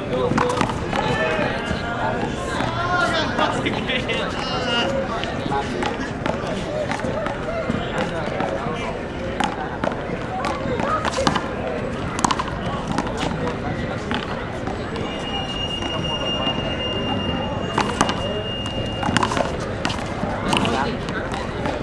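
A ball smacks sharply against a wall and off gloved hands, again and again.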